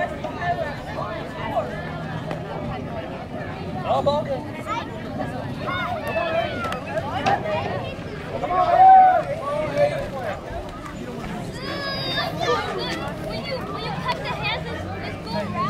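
A crowd of children and adults chatter and shout outdoors.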